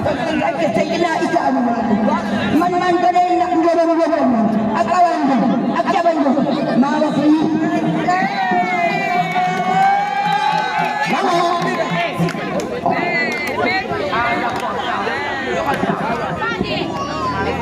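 An elderly woman sings into a microphone, loud through a loudspeaker.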